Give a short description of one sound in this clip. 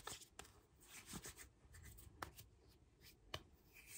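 Hands rub together close by.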